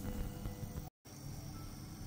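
Metal tongs clink against a plate.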